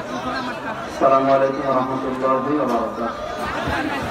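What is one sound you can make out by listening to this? A man chants in a drawn-out, sung voice through a microphone.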